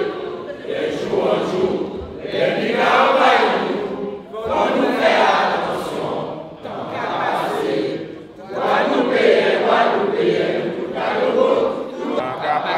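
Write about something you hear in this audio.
A crowd of men and women chants loudly in unison in an echoing hall.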